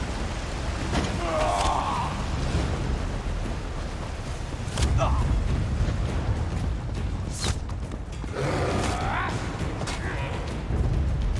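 A magic spell crackles and bursts.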